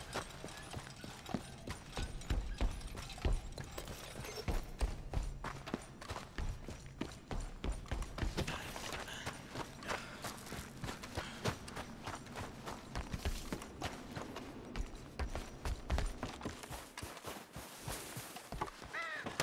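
Footsteps thud quickly on gravel and wooden boards.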